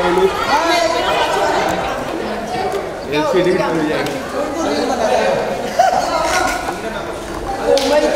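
Several men call out and talk loudly close by.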